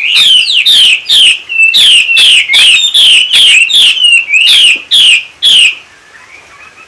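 A caged bird sings loud, rapid, repeated sharp notes close by.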